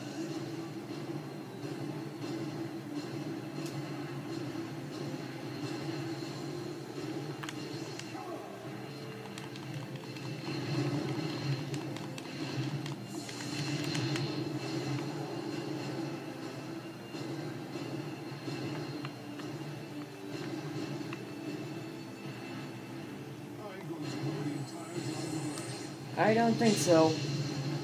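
Game sound effects of blasts and clashes play from a television speaker.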